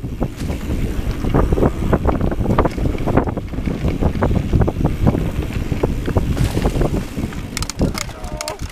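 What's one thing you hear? Bicycle tyres rattle and bump over a rough dirt trail.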